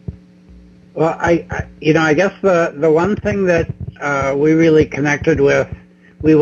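An older man speaks with animation over an online call.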